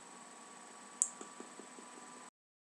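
A handheld microphone knocks softly as it is handled.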